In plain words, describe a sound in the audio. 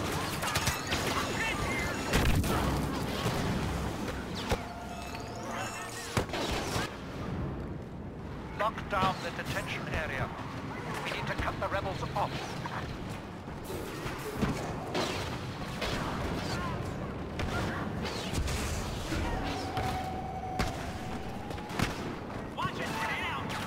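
Blaster guns fire in sharp bursts.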